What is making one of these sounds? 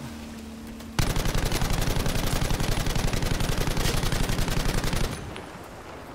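A machine gun fires a long rapid burst.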